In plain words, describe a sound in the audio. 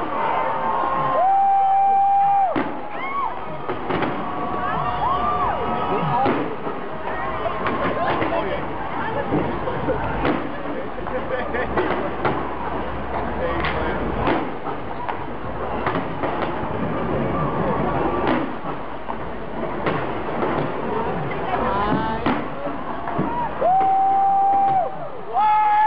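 Fireworks boom and bang in quick bursts.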